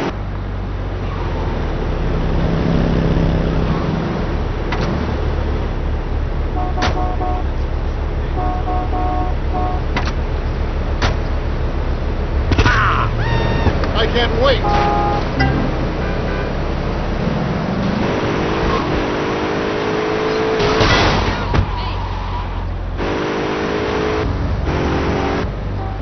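A car engine hums steadily and revs.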